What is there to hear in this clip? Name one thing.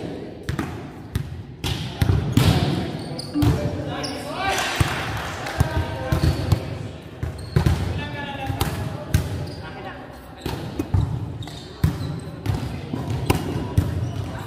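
A volleyball thuds off hands and arms in a large echoing hall.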